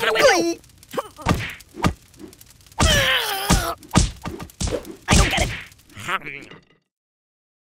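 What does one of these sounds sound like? Cartoon explosions burst with loud bangs.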